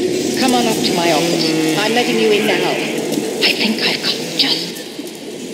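Flames roar from a burst of fire.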